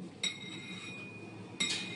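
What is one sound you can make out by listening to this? A metal spatula scrapes softly against frosting.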